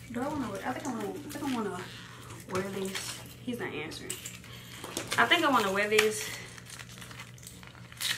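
Plastic packaging crinkles in hands.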